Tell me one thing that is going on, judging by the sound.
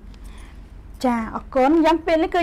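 A young woman speaks clearly through a microphone.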